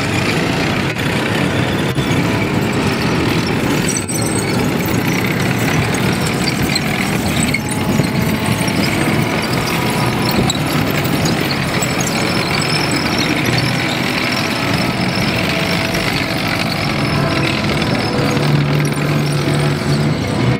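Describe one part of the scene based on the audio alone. Metal tracks clatter and squeak over dirt.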